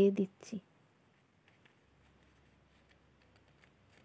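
Rice grains rustle and patter softly.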